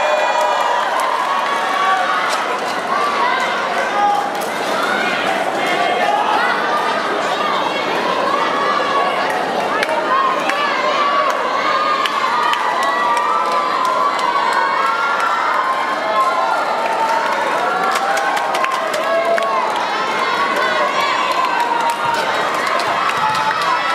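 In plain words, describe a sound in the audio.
Young women players shout and call out to each other.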